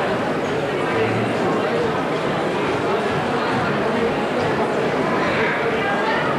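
Dancers' feet stamp and shuffle on a stage.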